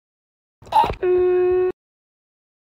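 A heart monitor sounds a long, steady beep.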